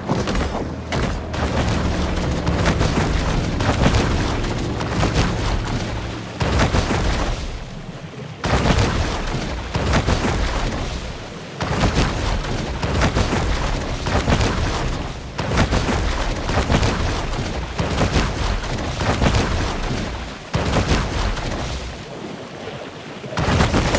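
Water splashes and churns as a creature swims fast through it.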